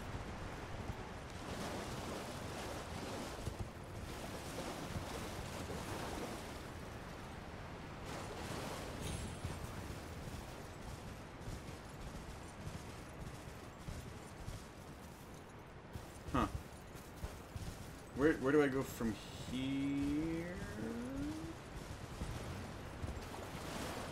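Water splashes under galloping hooves.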